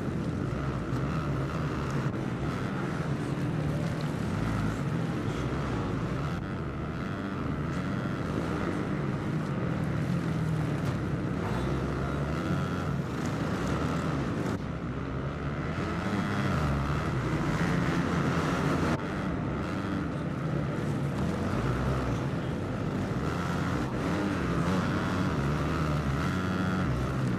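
Motorcycle engines roar and rev up and down throughout.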